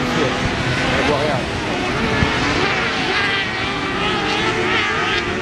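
Rally car engines roar and rev hard, outdoors.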